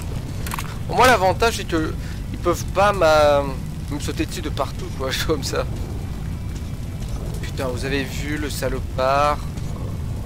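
A young man talks into a microphone.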